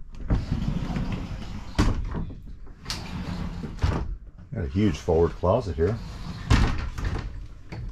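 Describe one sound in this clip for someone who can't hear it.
A door creaks and bumps as it swings open.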